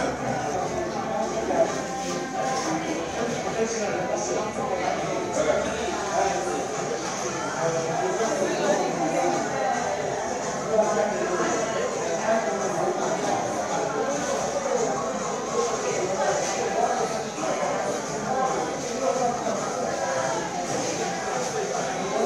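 A spoon scrapes ice cream in a paper cup.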